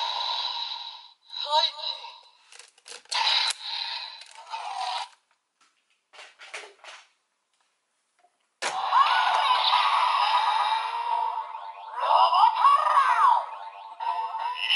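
A toy's small speaker plays tinny electronic sound effects and music.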